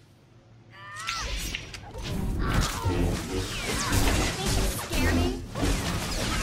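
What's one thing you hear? Lightsabers clash and hum in a fight.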